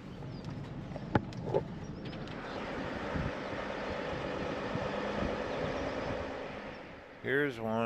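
A car drives along a road, heard from inside with a steady rumble.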